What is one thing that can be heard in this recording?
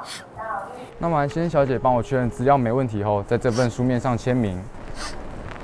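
A young man speaks calmly and politely, close by.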